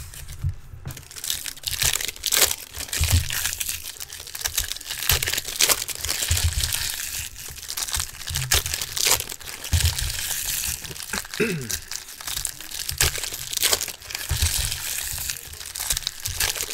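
Foil card packs crinkle and rustle as hands tear them open.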